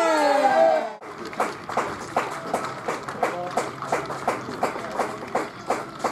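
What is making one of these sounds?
A small crowd of spectators claps their hands.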